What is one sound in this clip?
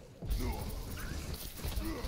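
An electric weapon crackles and buzzes in bursts.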